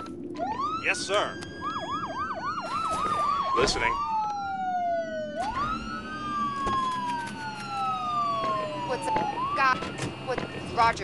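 A siren wails, rising and falling in pitch.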